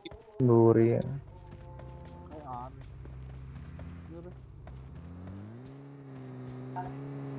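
A dirt bike engine drones as it rides.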